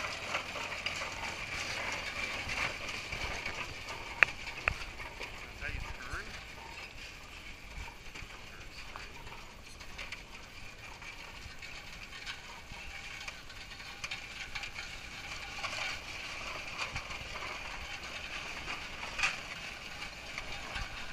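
A steam traction engine chugs and hisses as it rolls slowly past outdoors.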